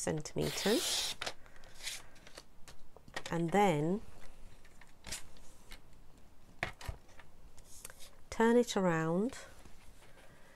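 Paper rustles and slides across a table.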